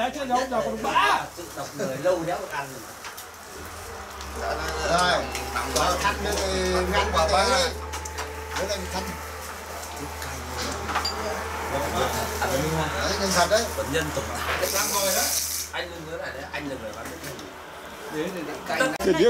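Dishes and bowls clink as food is handled.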